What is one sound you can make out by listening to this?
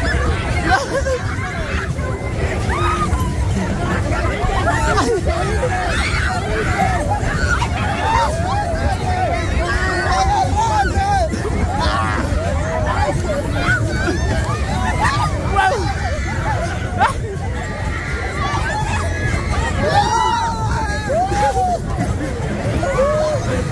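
A fairground ride rumbles steadily outdoors.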